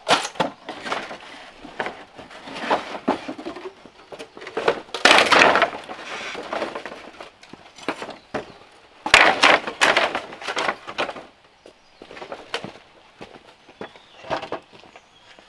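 Bamboo poles clatter and knock together as they are moved.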